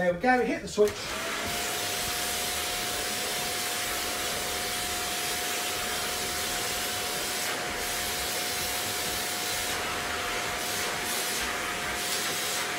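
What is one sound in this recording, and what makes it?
A vacuum cleaner runs with a steady whining roar.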